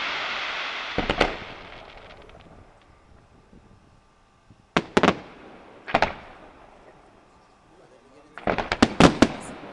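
Fireworks burst with loud booms that echo outdoors.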